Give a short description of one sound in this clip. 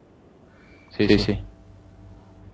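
A man speaks briefly through a headset microphone on an online call.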